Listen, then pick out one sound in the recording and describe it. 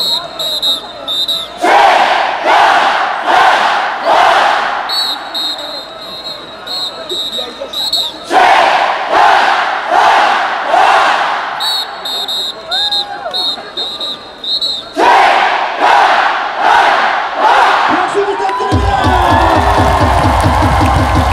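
A large stadium crowd chants loudly in rhythmic bursts.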